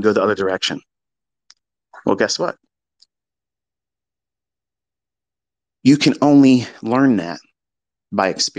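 A man speaks calmly close to a microphone, in short phrases with pauses.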